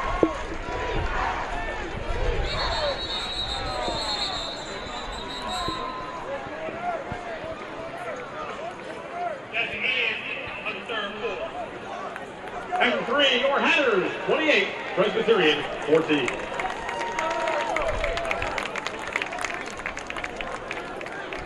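A crowd in the stands chatters and cheers outdoors.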